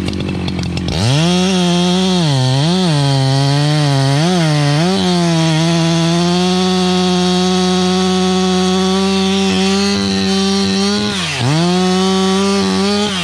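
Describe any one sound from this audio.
A chainsaw bites into a log, its engine bogging and straining as it cuts.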